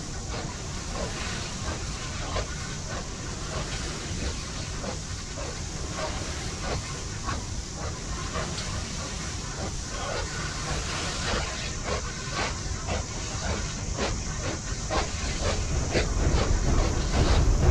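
A cart rumbles steadily as it rolls along a track.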